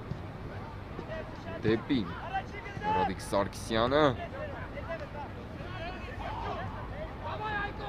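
Young players shout calls to each other across an open field.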